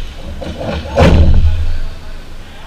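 A ball is kicked hard and thuds, echoing through a large hall.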